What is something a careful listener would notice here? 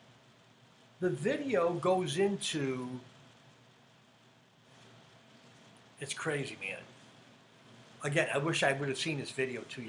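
A middle-aged man talks with animation into a nearby microphone, pausing between phrases.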